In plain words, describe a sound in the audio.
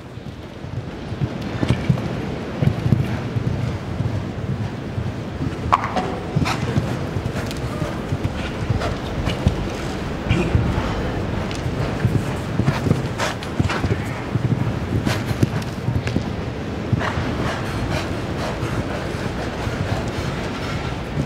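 A horse gallops with dull, rhythmic hoofbeats on soft ground.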